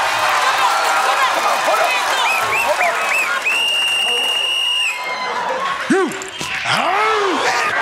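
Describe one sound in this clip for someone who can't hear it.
A studio audience cheers and shouts loudly.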